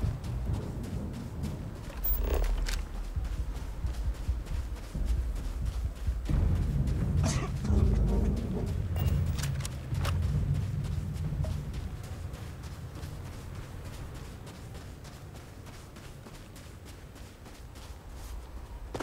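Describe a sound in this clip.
Strong wind roars and gusts through a dust storm outdoors.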